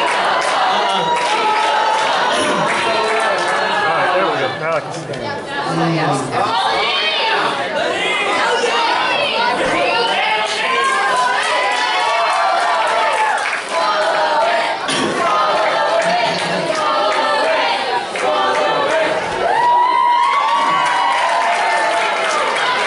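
Young women sing together through microphones in a large echoing hall.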